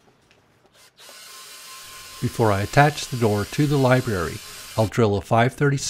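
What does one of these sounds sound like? A power drill whirs as it bores into wood.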